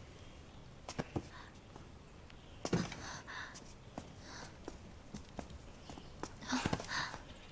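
Footsteps knock softly on a wooden floor.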